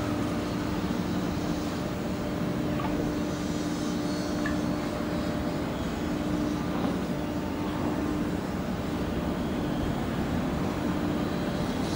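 A ship's engine hums steadily nearby.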